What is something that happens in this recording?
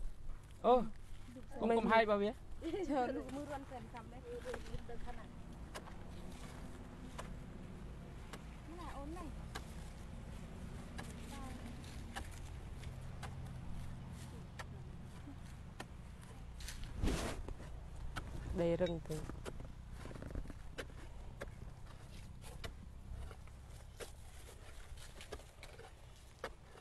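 A small hand tool digs and scrapes into dry soil.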